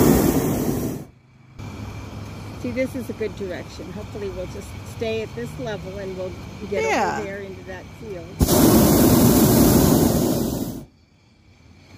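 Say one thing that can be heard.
A balloon burner roars loudly in bursts.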